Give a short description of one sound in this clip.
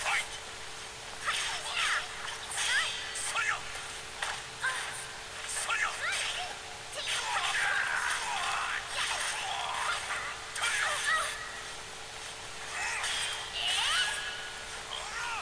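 Swords clash and whoosh in quick bursts.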